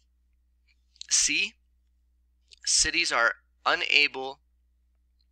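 A man speaks calmly into a microphone, heard as over an online call.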